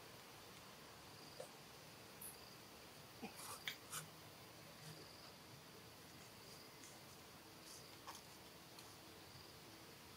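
Dry leaves rustle and crackle as a baby monkey shifts about on the ground.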